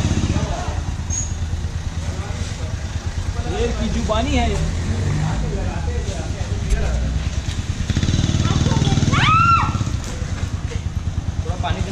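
A motorcycle engine chugs steadily nearby.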